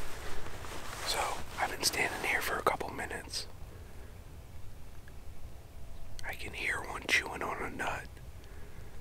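A young man speaks quietly and calmly close by, in bursts with pauses.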